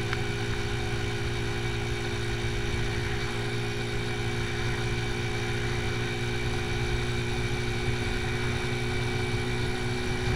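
A motorcycle engine hums steadily at cruising speed.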